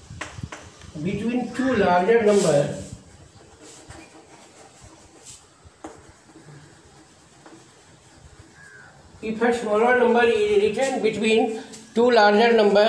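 A middle-aged man speaks calmly and clearly nearby, as if teaching.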